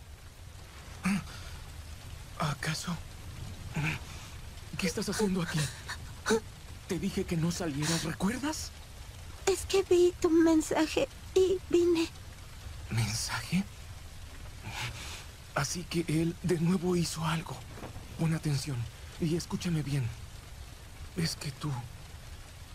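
A young man speaks calmly and quietly.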